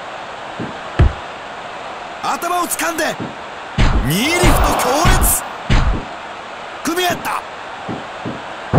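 Blows land with heavy slapping thuds.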